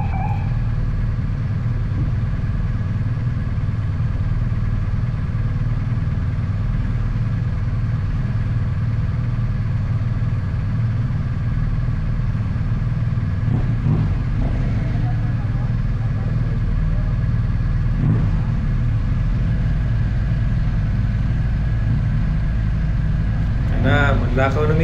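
A motorcycle engine idles with a steady low rumble close by.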